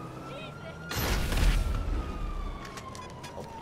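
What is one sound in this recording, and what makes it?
An explosion booms heavily.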